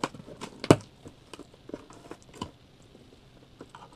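Cardboard flaps knock and rustle as a box is opened.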